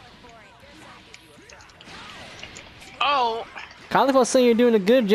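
Punches and energy blasts land with sharp thuds and bursts.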